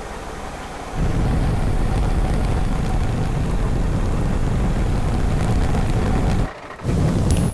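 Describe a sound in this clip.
A heavy metal hull grinds and rumbles.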